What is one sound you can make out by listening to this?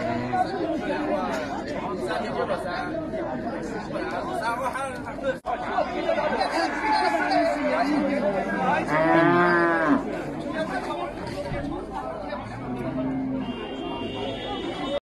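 Several men talk loudly and over one another in a crowd outdoors.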